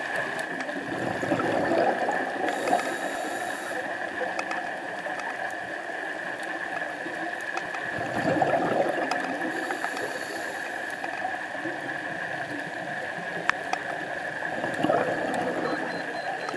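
Air bubbles gurgle and rush in bursts underwater.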